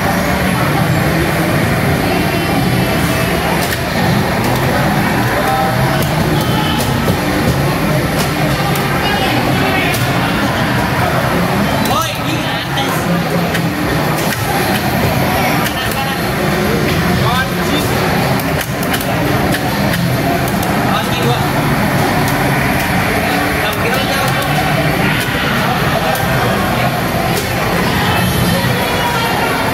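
Music plays loudly from arcade loudspeakers.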